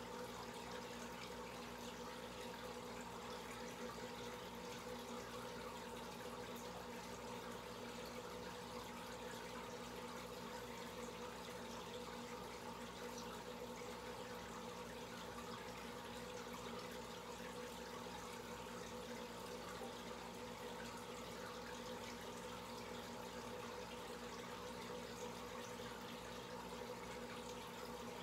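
Air bubbles rise and burble steadily in an aquarium.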